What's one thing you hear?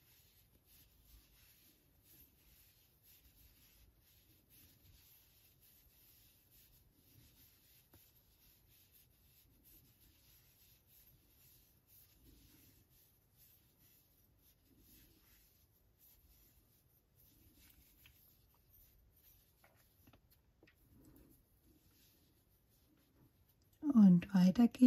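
A crochet hook softly rubs and clicks through yarn.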